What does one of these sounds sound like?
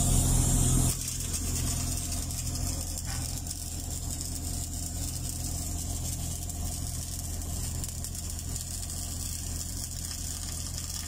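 An electric welding arc crackles and buzzes steadily.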